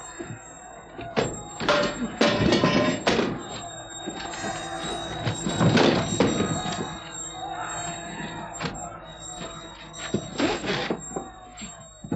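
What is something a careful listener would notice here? Metal armour clanks and clashes as men fight.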